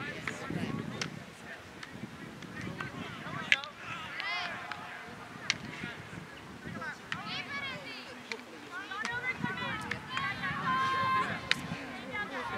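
Field hockey sticks clack sharply against a ball.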